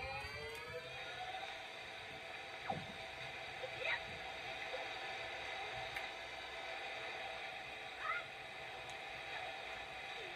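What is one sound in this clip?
Water splashes as a small character wades and swims.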